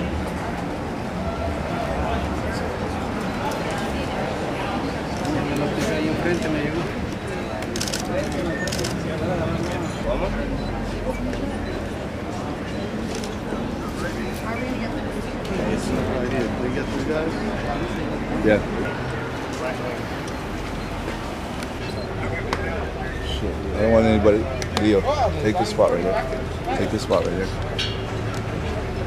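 A crowd of people chatter indistinctly.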